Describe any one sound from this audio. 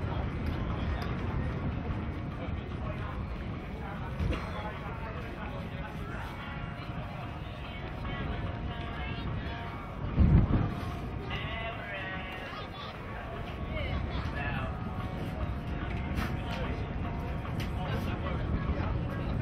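Outdoors in wind, a crowd of spectators murmurs and calls out from afar.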